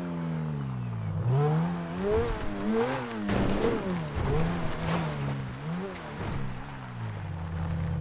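A sports car engine revs up and down as the car races along.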